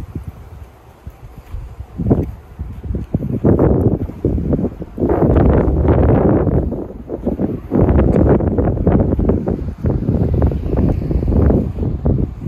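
Wind gusts and rumbles loudly outdoors.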